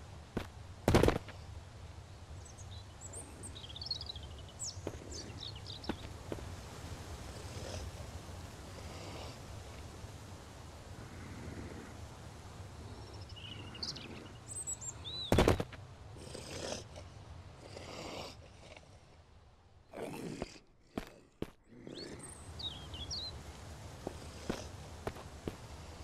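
Footsteps tread slowly on a concrete floor.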